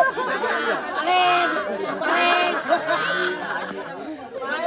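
Men laugh loudly nearby.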